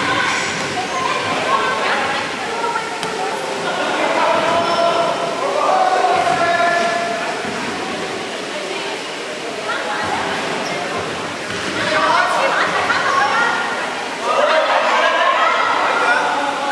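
Many children shout and chatter in a large echoing hall.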